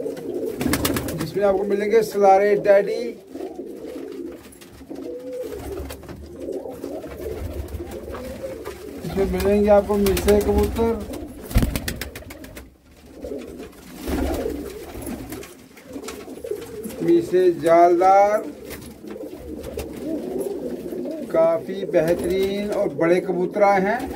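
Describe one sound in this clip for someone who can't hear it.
Pigeons coo softly and steadily.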